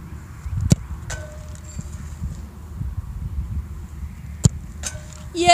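A soccer ball is kicked with a sharp thump, outdoors.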